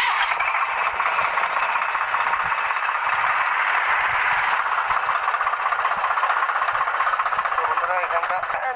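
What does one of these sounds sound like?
A tractor engine runs with a loud, steady rattle close by.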